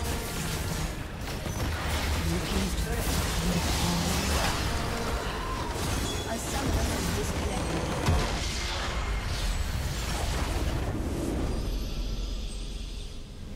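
Magic spells crackle and clash in a busy video game battle.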